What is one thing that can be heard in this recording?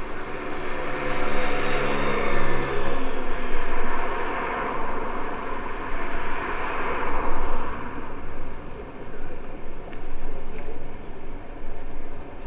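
Bicycle tyres roll on smooth pavement.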